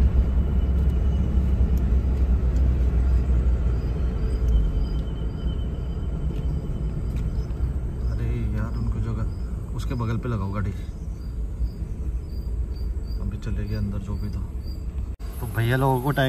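A car engine hums steadily while tyres roll over a paved road.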